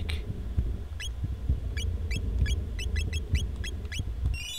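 Short electronic menu blips chirp one after another.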